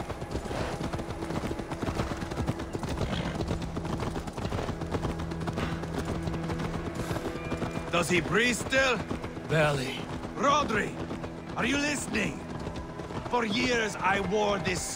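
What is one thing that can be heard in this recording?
A horse gallops, its hooves pounding on a dirt path.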